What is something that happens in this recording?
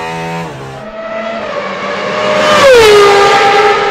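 A racing car engine roars as it passes at speed.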